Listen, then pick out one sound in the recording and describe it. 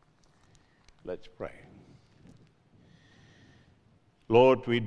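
An elderly man speaks slowly and solemnly into a microphone in a large echoing hall.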